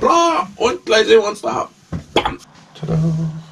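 A man talks with animation close by.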